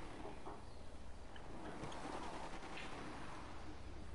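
A car engine hums as a car drives up and stops.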